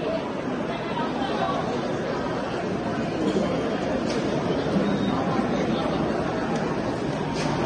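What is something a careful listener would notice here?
A crowd of men and women chatter throughout an echoing indoor hall.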